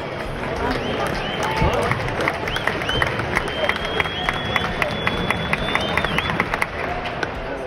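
A stadium crowd claps in a quick, steady rhythm.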